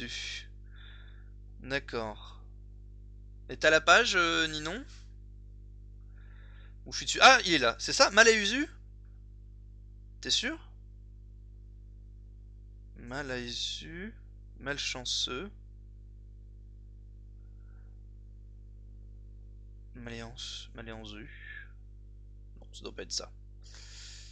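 A man speaks close to a microphone, reading out words in short bursts.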